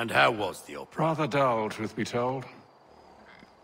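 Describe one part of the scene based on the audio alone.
A man answers in a calm, low voice.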